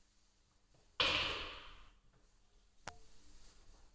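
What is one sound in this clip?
Billiard balls clack together sharply.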